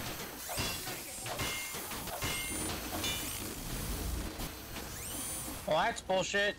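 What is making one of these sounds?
A metal wrench clangs repeatedly against a machine.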